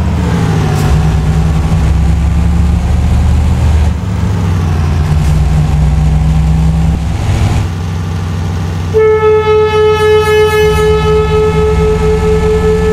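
A truck's diesel engine rumbles steadily and revs.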